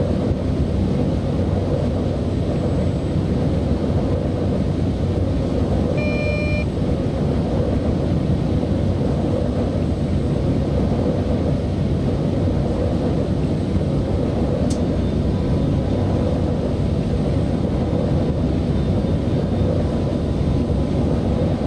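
A train's engine hums steadily as the train rolls along the rails.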